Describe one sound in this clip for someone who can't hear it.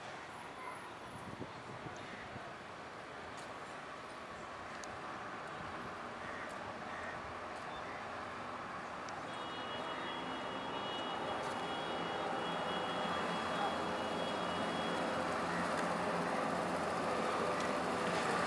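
A motorcycle engine hums as it rides closer.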